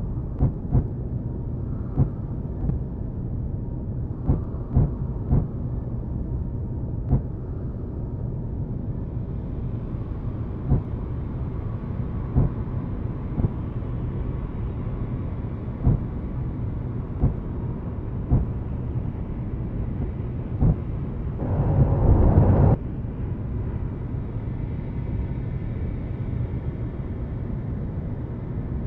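A deep mechanical rumble drones steadily.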